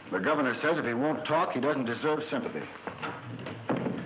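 A wooden door shuts.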